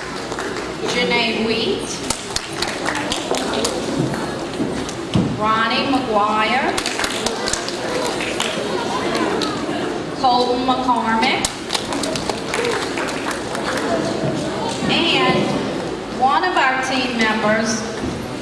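A woman reads out names over a loudspeaker in a large hall.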